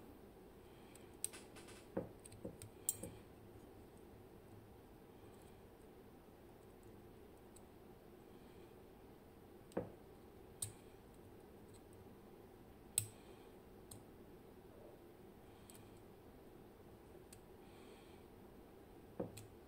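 Metal lock picks click and scrape inside a lock.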